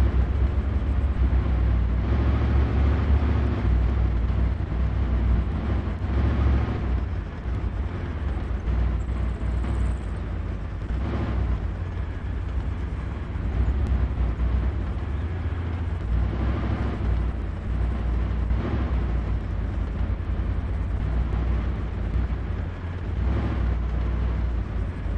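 A tank engine rumbles low and steady as the tank drives.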